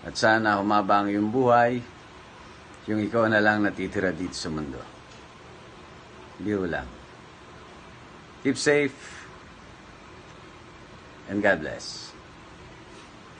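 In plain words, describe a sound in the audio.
A young man speaks calmly and closely into a phone microphone.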